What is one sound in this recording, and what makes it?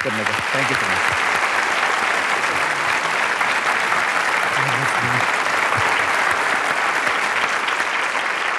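A large studio audience applauds steadily.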